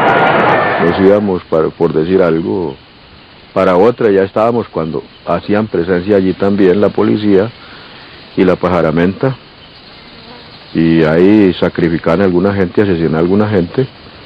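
An elderly man speaks calmly and close up through a microphone.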